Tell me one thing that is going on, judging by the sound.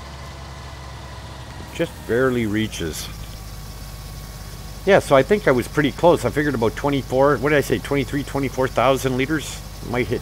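Grain pours from an unloading auger into a trailer.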